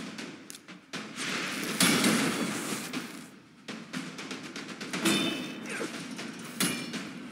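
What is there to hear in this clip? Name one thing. Magic spells burst with whooshing blasts.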